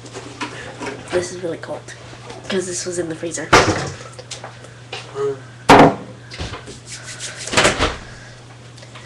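A plastic lid knocks and clatters in a girl's hands.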